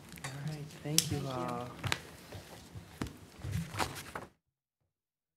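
Papers rustle and knock on a table.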